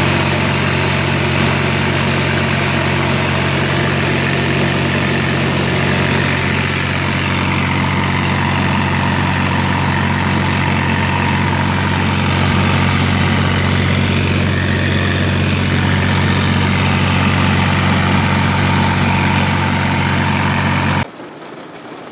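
A tractor engine drones loudly and steadily.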